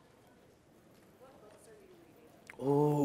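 A woman asks a question from the audience, faint and distant.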